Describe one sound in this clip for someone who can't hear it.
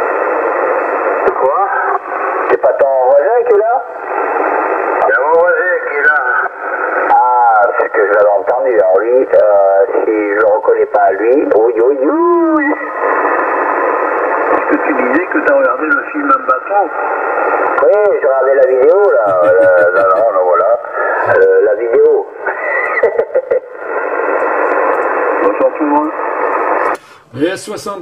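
A radio receiver hisses with steady static.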